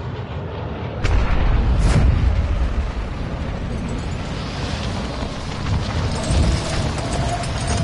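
Wind rushes loudly past during a fall through the air.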